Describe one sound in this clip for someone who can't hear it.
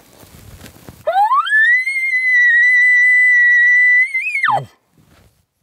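A man blows a long, high-pitched elk call that rises, holds and then drops.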